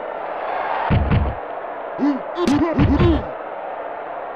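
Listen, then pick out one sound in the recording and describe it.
Football players collide with low thuds.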